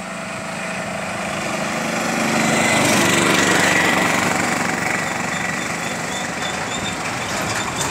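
A heavy truck rumbles past, growing louder and then fading.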